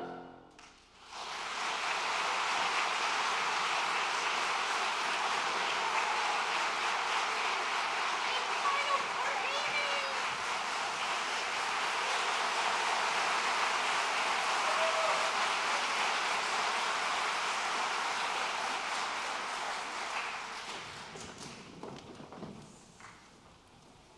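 An audience applauds loudly in a large hall, then the clapping fades.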